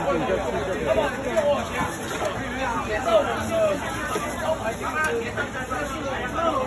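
A crowd of people chatter all around.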